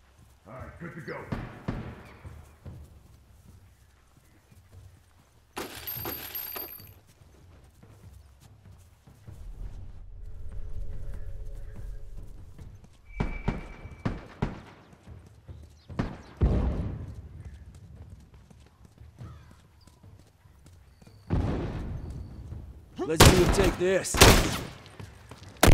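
Footsteps run over grass and pavement.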